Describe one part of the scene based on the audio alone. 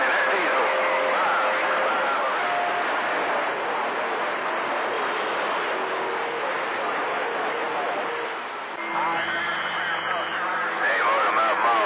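Radio static hisses steadily through a small speaker.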